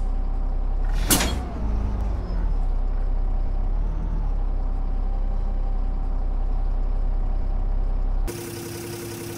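A bus engine idles with a low rumble, heard from inside the cab.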